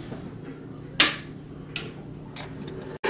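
A toggle switch clicks.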